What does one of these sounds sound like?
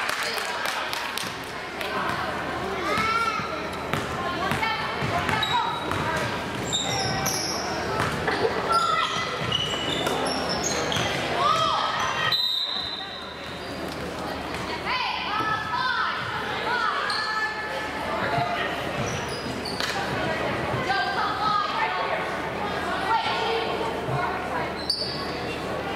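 Spectators talk and call out loudly in an echoing hall.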